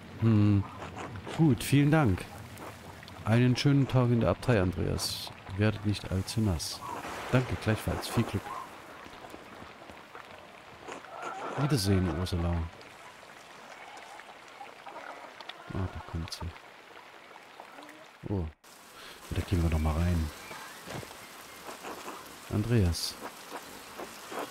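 A man talks calmly and with animation close to a microphone.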